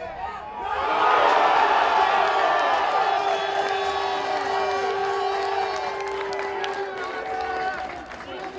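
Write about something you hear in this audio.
Footballers shout and cheer after a goal.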